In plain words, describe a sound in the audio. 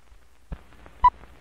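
A short sharp beep sounds once.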